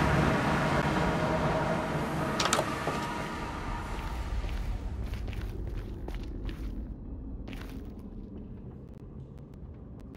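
Footsteps crunch on rough ground.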